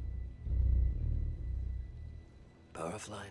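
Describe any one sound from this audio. A deep, heavy rumble booms and fades away.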